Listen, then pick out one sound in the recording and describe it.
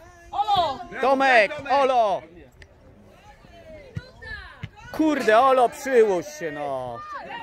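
Young men shout loudly across an open sports field.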